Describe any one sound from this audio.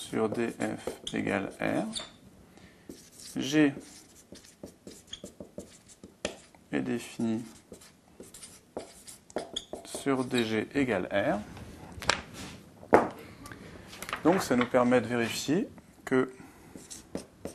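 A man speaks calmly and clearly, close by.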